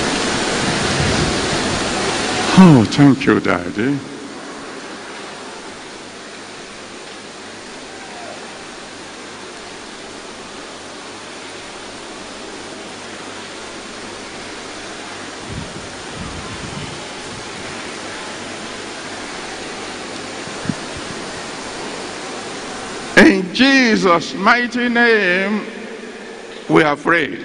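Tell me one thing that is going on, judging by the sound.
A large crowd prays aloud together in a big echoing hall.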